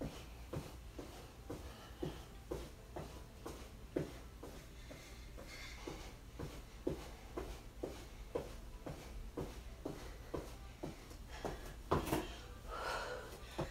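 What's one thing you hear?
A woman breathes hard from exertion.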